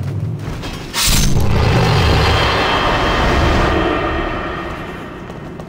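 A magic spell bursts with a loud rushing roar.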